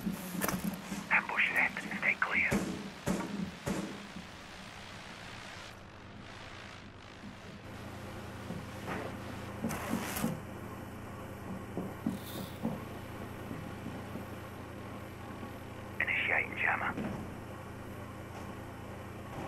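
Footsteps thud softly on a hard floor.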